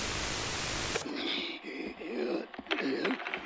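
A man speaks in a low, distorted voice, as if through a loudspeaker.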